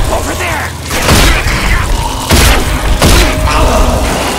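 A shotgun fires several blasts.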